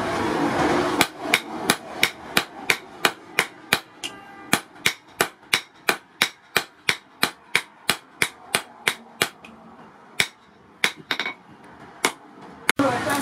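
A hammer rings sharply on hot metal over an anvil in a quick, steady rhythm.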